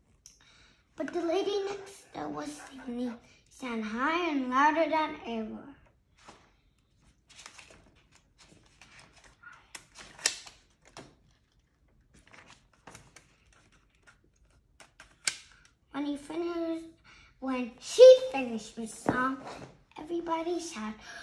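A young boy reads aloud slowly from a book, close by.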